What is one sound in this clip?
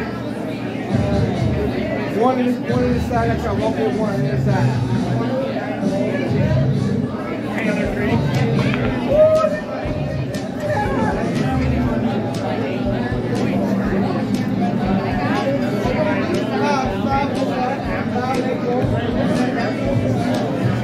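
Many people talk and chatter in a busy, echoing room.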